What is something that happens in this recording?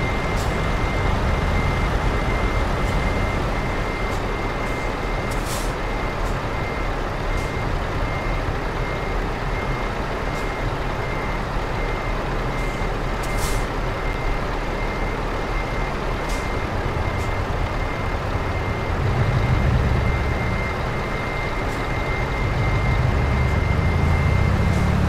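A heavy truck engine rumbles steadily, swelling louder now and then.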